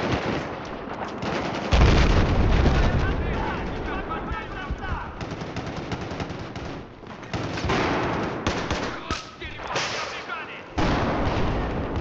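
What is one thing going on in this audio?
Gunfire and explosions boom loudly.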